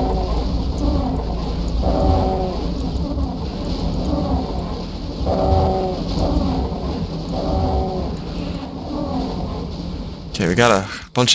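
A crowd of monsters growls and roars.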